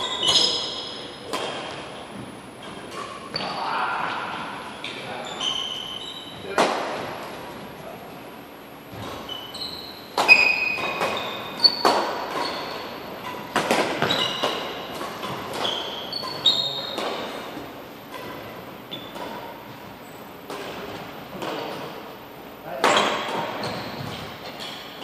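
Shuttlecocks are struck with rackets, with sharp pops that echo around a large hall.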